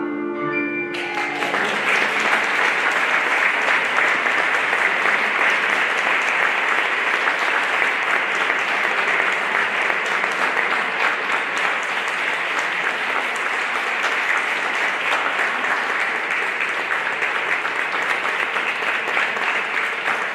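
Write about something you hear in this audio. A large crowd applauds in an echoing hall.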